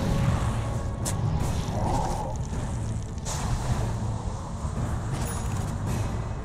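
Game spells whoosh and crackle in bursts.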